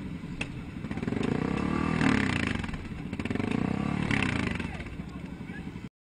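Motorcycle engines rumble and rev loudly nearby.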